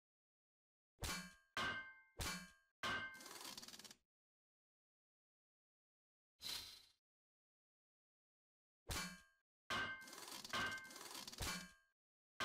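Short clicks and chimes sound as bridge parts are placed.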